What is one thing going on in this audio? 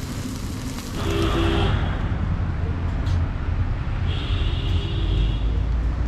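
A car horn honks nearby.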